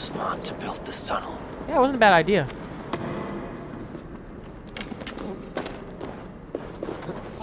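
Footsteps scuff on a dirt floor.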